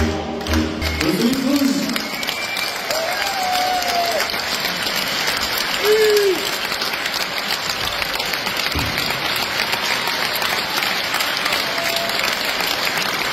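A large audience applauds loudly and steadily.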